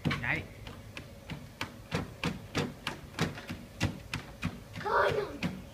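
Bare feet thump rhythmically on a running treadmill belt.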